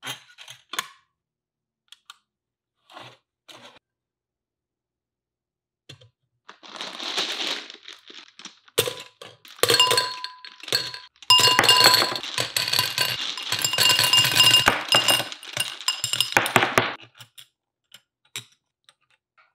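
Plastic parts click together.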